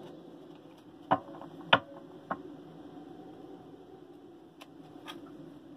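Cards shuffle and tap together.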